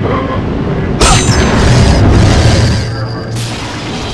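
A magic blast bursts with a loud crackling whoosh.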